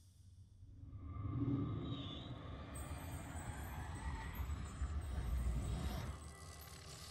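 A bright magical burst roars and whooshes.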